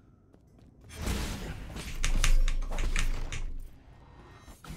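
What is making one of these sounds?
Sword slashes whoosh and clang in a game fight.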